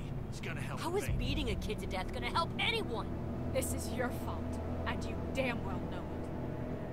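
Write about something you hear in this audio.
A young woman shouts angrily.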